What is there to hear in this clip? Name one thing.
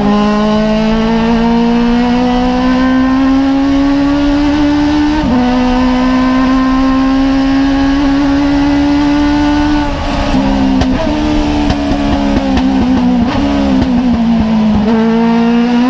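A race car engine roars at full throttle, heard from inside the cockpit.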